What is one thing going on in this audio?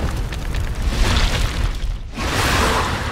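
Heavy blows thud and crash with a deep rumble.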